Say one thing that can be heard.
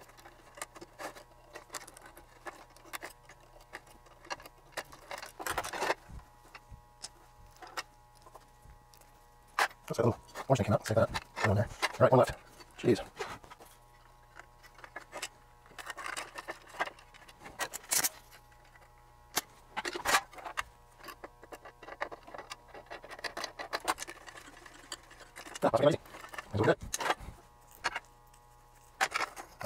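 Small metal parts click and tap as hands work on a device.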